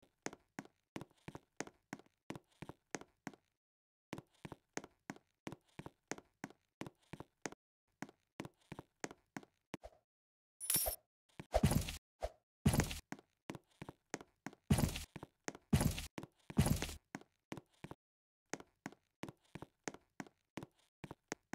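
Quick footsteps patter in a steady running rhythm.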